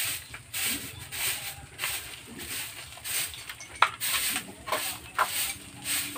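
A broom sweeps and scrapes across a dirt floor.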